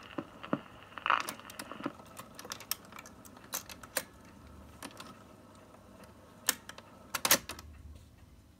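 A record changer's mechanism clatters and clunks.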